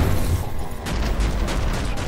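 Metal scrapes and grinds in a burst of sparks.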